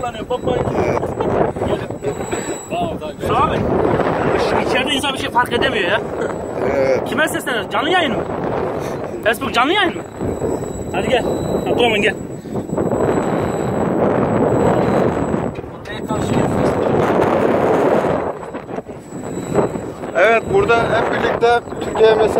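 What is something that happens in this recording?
Wind blusters loudly against the microphone.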